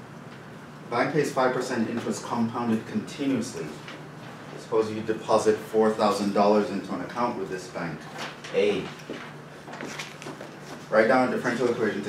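A man speaks calmly, heard in a room with a slight echo.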